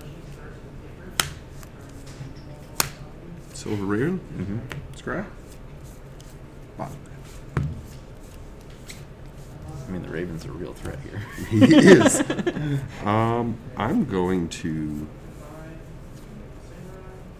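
Cards are shuffled in a hand.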